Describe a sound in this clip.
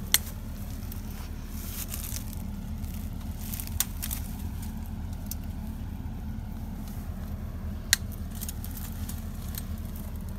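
Leaves and branches rustle as a hand pulls at them.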